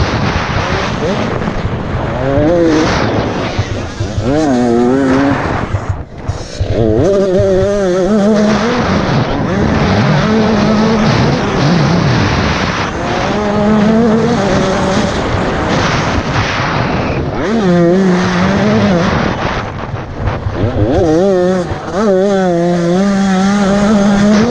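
A dirt bike engine revs hard up and down close by.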